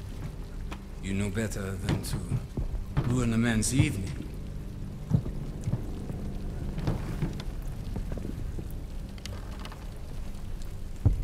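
A man speaks firmly and loudly, nearby.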